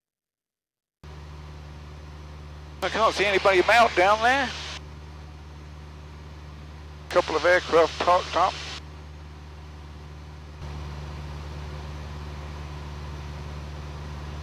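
A light aircraft engine drones steadily.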